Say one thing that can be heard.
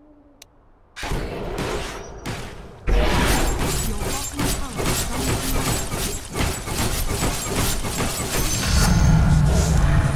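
Magical spell effects whoosh and crackle in a fight.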